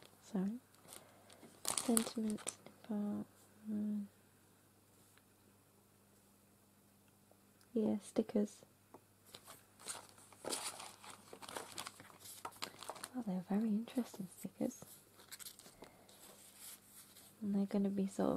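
Stiff paper cards rustle and tap as they are handled.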